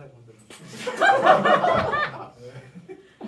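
A brass ensemble plays a short loud phrase in a room.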